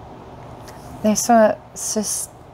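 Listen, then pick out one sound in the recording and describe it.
A woman speaks softly and calmly, close to a microphone.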